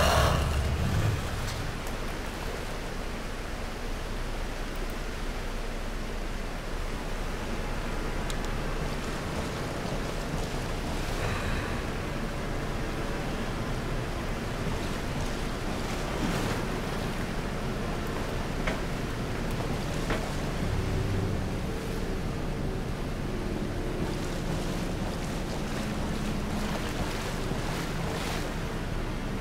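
Footsteps splash slowly through shallow water.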